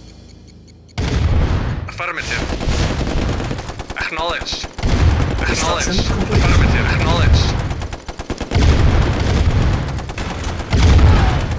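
Tank engines rumble as tanks roll along.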